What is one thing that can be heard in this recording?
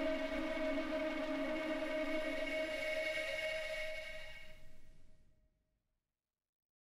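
Music plays from a spinning vinyl record and fades out.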